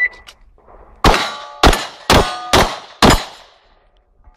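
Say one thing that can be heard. A pistol fires five quick, sharp shots outdoors.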